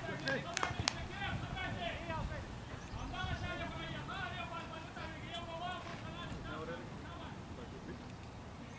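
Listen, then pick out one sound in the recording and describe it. Men talk and call out to each other at a distance outdoors.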